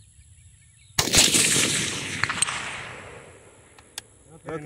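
A rifle fires a single loud shot that echoes across open ground.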